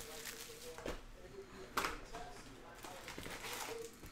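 Cardboard flaps scrape and thud as a box is opened.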